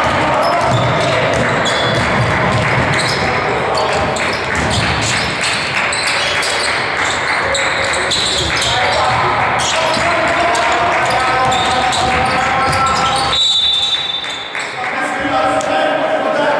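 Sneakers squeak on a wooden basketball court in a large echoing hall.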